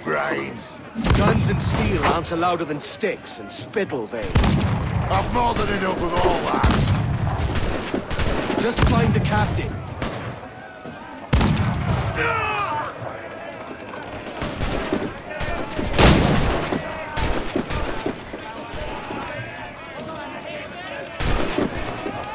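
Cannons boom loudly again and again.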